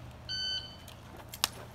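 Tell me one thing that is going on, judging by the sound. A shot timer beeps.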